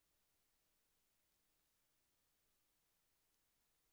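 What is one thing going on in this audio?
A hand faintly taps and knocks on a glass panel.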